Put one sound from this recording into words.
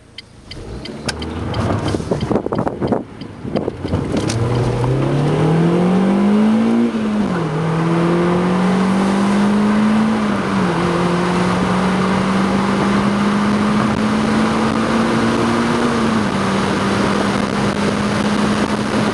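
Wind and road noise roar steadily inside the car.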